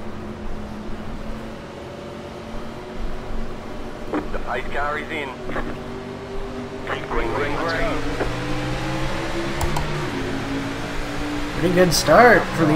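A racing car engine drones, then revs higher as the car speeds up.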